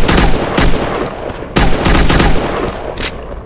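A rifle fires loud, rapid shots.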